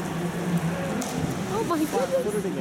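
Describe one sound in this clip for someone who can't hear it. A diver splashes into the water.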